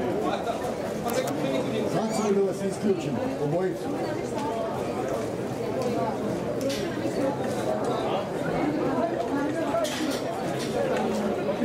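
Horses' hooves thud on a dirt track as harness horses trot past.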